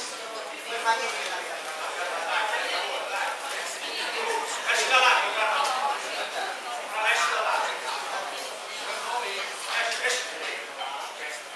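A crowd of people chatters and calls out in a large echoing hall.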